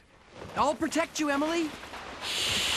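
A young girl cries out in alarm.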